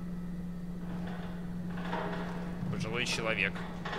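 Swinging doors bump open.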